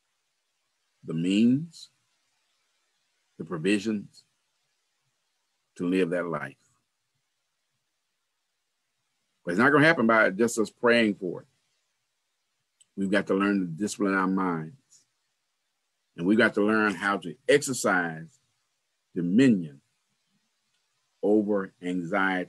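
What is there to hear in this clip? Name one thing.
A middle-aged man speaks slowly in short phrases with pauses, heard over an online call.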